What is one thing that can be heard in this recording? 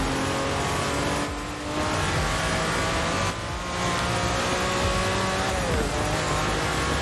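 A sports car engine roars at high revs, dipping briefly at each gear change.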